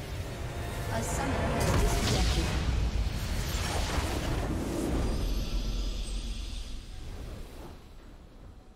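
A building explodes with a deep rumbling boom that slowly fades.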